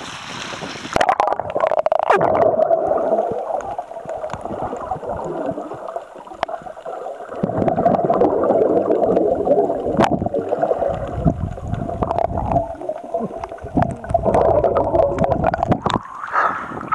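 Muffled underwater bubbling and rumbling go on steadily.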